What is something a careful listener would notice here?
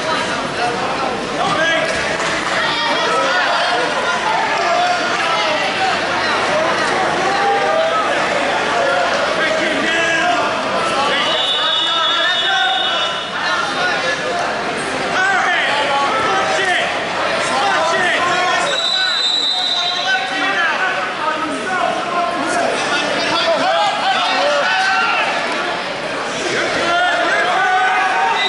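A crowd of spectators chatters and shouts, echoing in a large hall.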